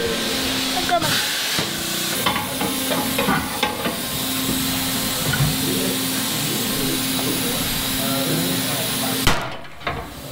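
A hammer bangs on metal under a vehicle.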